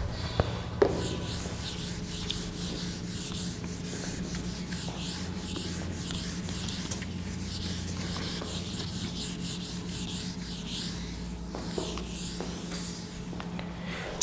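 A board eraser rubs across a whiteboard.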